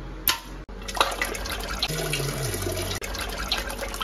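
Water splashes in a toilet bowl.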